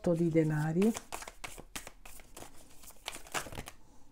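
Playing cards shuffle with quick, crisp flicks.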